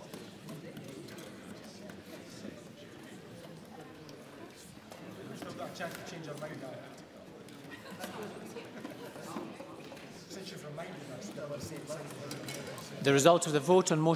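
Many people murmur and chatter quietly in a large echoing hall.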